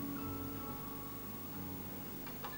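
An acoustic guitar's last notes ring out softly and fade.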